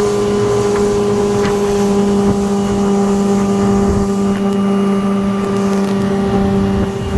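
A boat motor drones steadily at high speed.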